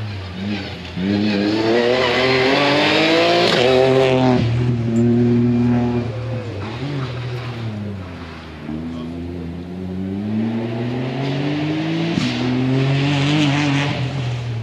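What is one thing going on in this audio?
A rally car engine revs hard and roars past close by, then fades into the distance.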